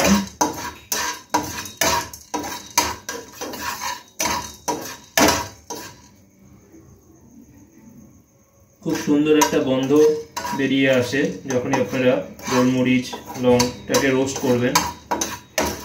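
A spatula scrapes and taps rapidly against a metal pan.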